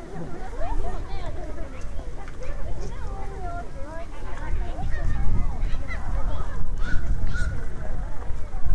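A crowd of men and women chatters nearby outdoors.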